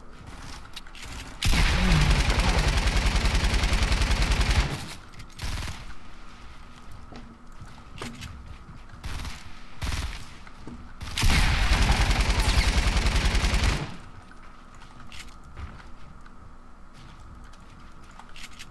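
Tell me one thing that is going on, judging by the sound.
Building pieces clatter and snap into place in a video game.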